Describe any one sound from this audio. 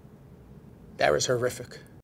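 An elderly man speaks with animation, close to the microphone.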